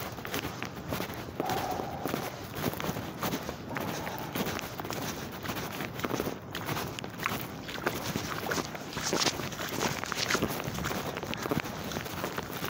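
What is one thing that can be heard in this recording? Clothing rustles against a bag.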